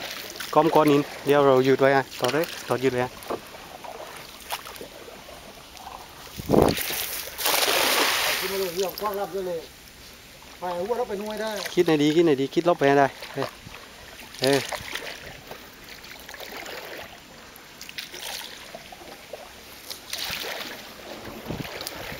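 A paddle dips and splashes in water.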